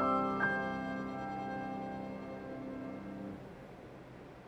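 A piano plays sustained closing chords.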